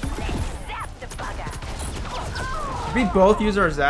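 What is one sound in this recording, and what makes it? Video game gunfire crackles in quick bursts.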